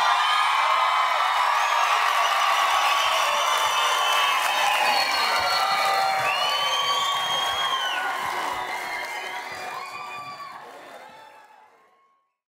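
Sneakers squeak sharply on a stage floor.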